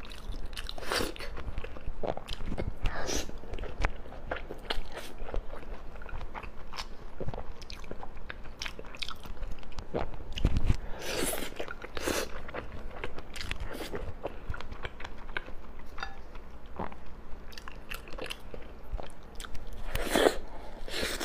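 A young woman chews and slurps soft food close to a microphone, with wet smacking sounds.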